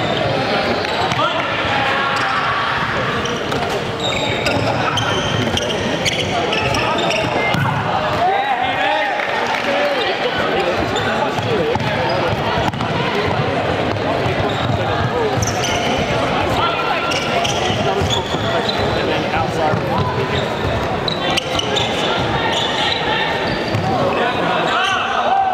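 A crowd of spectators chatters and cheers throughout in a large echoing hall.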